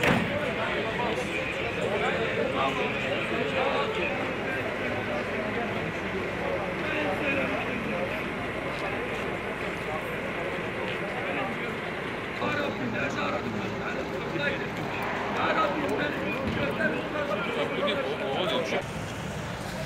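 A crowd of men talks and murmurs outdoors close by.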